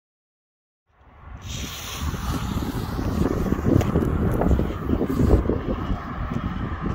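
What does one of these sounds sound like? A firework fuse fizzes and sputters as it burns.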